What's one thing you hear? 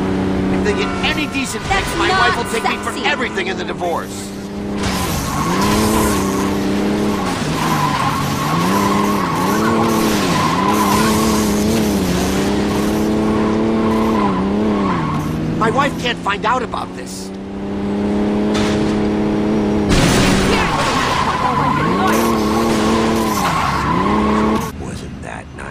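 A car engine revs hard, rising and falling.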